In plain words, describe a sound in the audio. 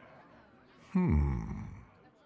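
A deep male voice hums thoughtfully, loud and close.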